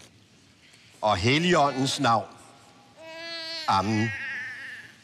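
A baby cries loudly in short bursts.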